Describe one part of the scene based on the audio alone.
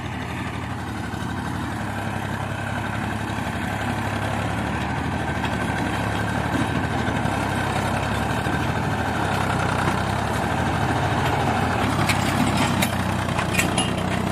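A tractor engine chugs steadily as it drives closer and grows louder.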